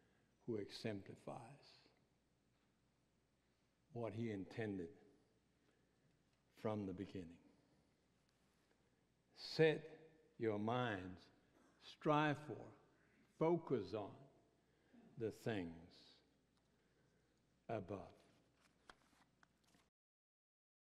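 An older man speaks with animation through a microphone, in bursts with pauses.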